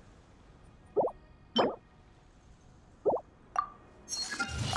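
Short soft electronic blips sound.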